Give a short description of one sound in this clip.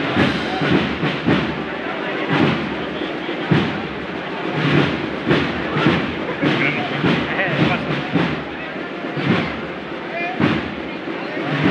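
A crowd murmurs and chatters close by.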